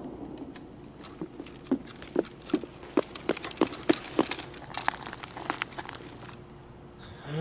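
Footsteps crunch quickly over gravel and debris.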